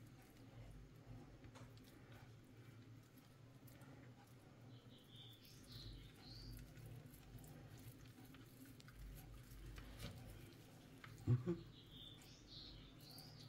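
Hands press and roll raw meat with soft squelching sounds.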